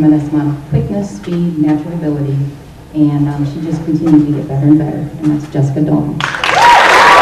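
A woman speaks calmly through a microphone and loudspeakers in a large echoing hall.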